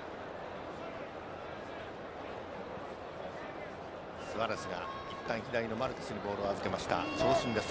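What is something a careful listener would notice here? A large stadium crowd murmurs steadily in the distance.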